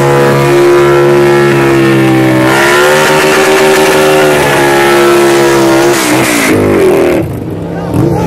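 A motorcycle engine roars loudly at high revs.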